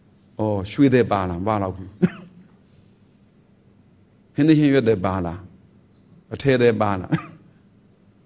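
A man speaks calmly and close to a microphone, in short phrases with pauses.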